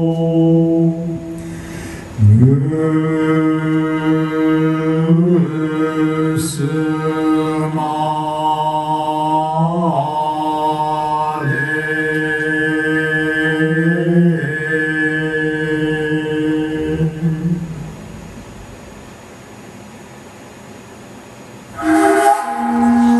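A man sings long, held notes that slide between pitches.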